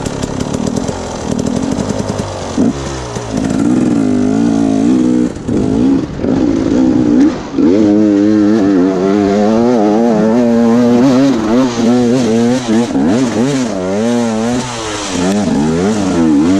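A dirt bike engine revs hard close by, its pitch rising and falling.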